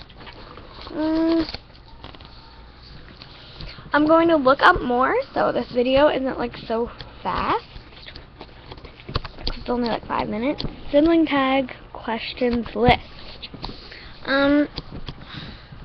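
A young girl talks close to a webcam microphone.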